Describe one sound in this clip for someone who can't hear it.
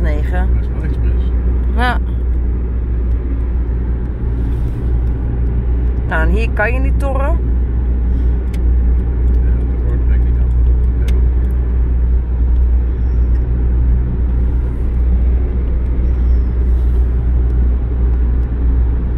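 A car engine and tyres rumble low and steadily from inside a moving car.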